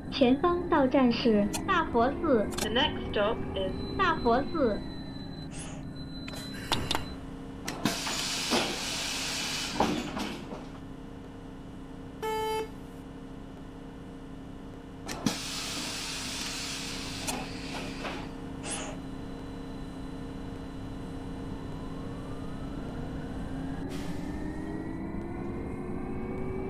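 A bus engine hums steadily and rises in pitch as the bus speeds up.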